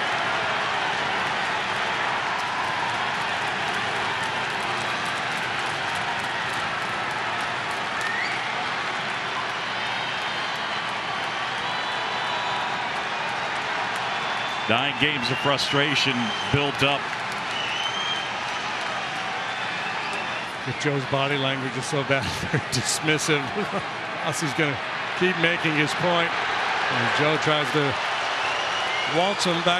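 A large crowd murmurs and cheers in a big open stadium.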